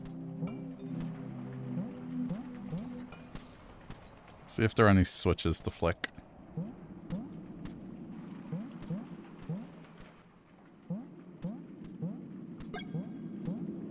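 Soft, dreamy electronic game music plays with repeating short chirps.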